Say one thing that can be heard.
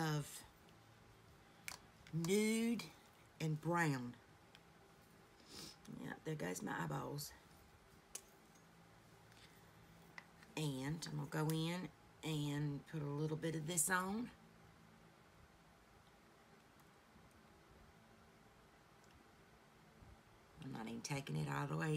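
A woman talks calmly and close to a microphone, in short bursts with pauses.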